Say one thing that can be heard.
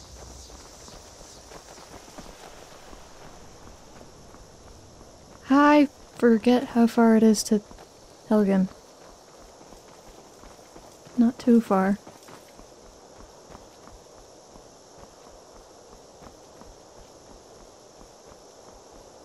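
Footsteps crunch steadily on a dirt path.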